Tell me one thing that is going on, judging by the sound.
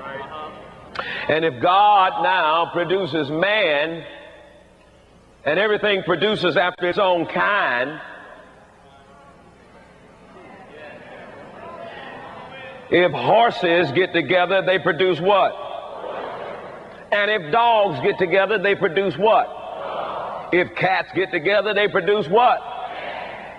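A man speaks with animation and pauses, heard through a microphone.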